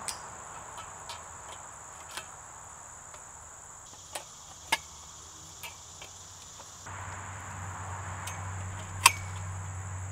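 Plastic pipe fittings click and knock together.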